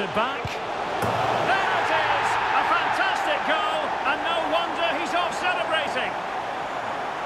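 A stadium crowd swells into loud cheering.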